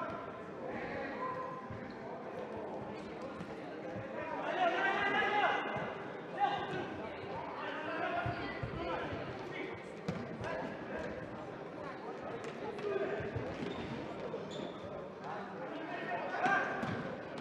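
Shoes squeak on a hard court floor.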